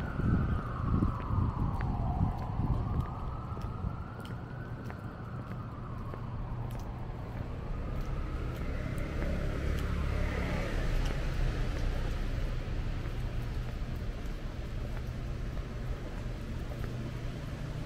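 Footsteps tap steadily on wet pavement.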